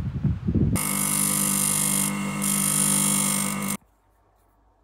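A bench grinder whines loudly as metal is ground against its wheel.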